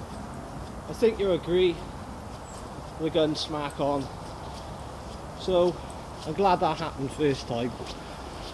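A man speaks calmly outdoors, coming closer.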